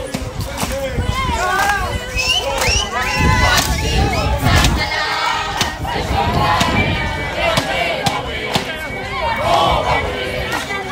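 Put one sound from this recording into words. Women ululate loudly and shrilly.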